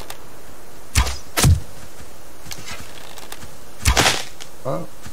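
A bowstring snaps as an arrow is shot.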